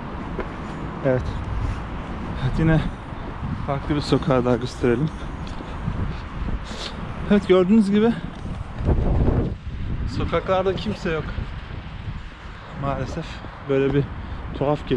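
A young man talks with animation close to the microphone, outdoors.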